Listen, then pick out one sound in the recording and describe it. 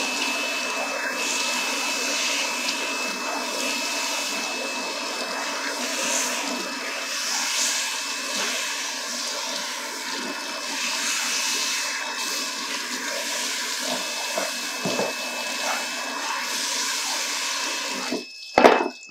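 Water sprays from a handheld shower head onto hair.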